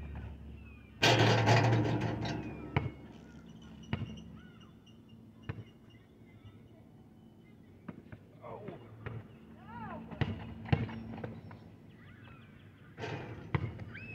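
A basketball clangs against a hoop's rim.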